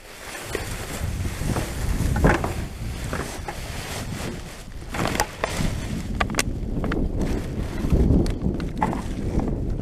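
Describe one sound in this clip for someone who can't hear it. Empty cans and bottles clatter into a plastic bin.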